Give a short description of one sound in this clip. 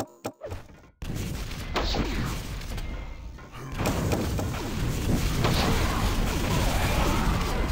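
Weapons fire in rapid bursts.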